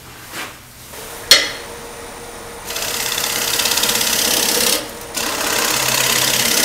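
A lathe motor whirs steadily.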